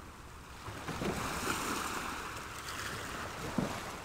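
Oars splash and dip into the water.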